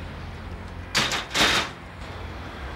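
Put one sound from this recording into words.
A door creaks open and bangs shut.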